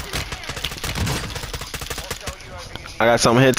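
Rapid gunshots fire in quick bursts.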